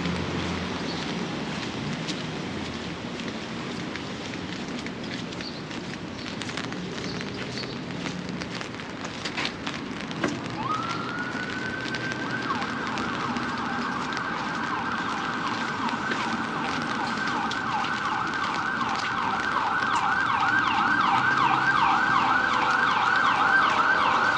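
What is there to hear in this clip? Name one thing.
Footsteps tap on a brick sidewalk.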